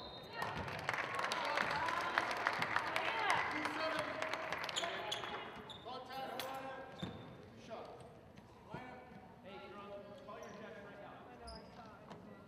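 Young women call out to each other across an echoing gym.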